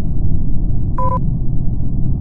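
A game gives a soft click as a menu opens.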